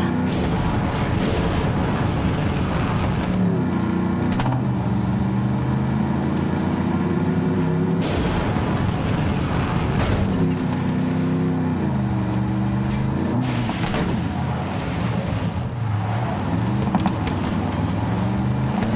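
A vehicle engine roars and revs up and down steadily.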